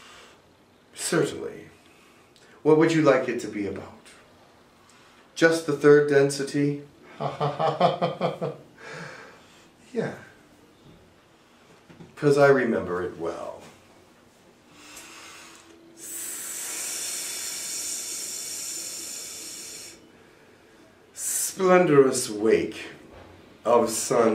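A middle-aged man talks calmly and close by, in short bursts with pauses.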